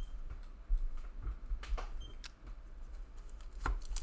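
Trading cards shuffle and flick between fingers.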